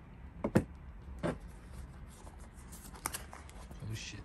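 A sneaker knocks and rustles as it is lifted and turned in a hand.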